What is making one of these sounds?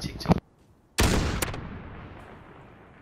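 A rifle fires a single loud shot that echoes away.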